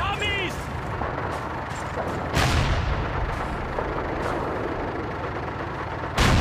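A tank engine rumbles and clanks close by.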